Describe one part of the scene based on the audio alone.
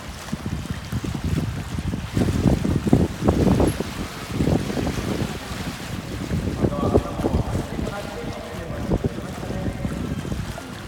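An orca splashes and slaps water near the edge of a pool.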